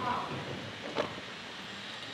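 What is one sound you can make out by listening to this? A locker door clicks.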